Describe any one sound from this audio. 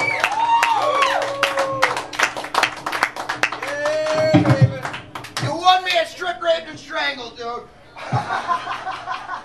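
Electric guitars play loudly with a live band.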